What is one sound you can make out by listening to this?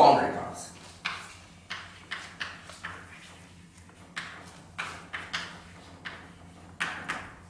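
Chalk taps and scrapes sharply on a chalkboard.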